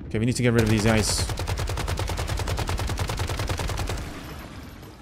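An automatic rifle fires in a rapid burst.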